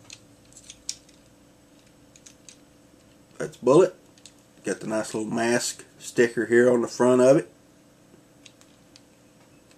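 Small plastic clicks come from a toy being handled.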